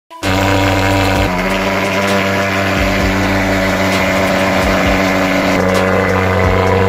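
A fogging machine engine roars loudly and steadily up close.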